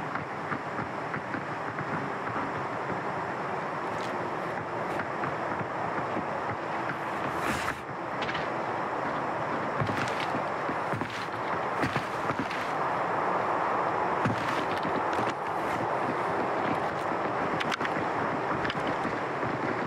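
A man talks calmly through a close microphone.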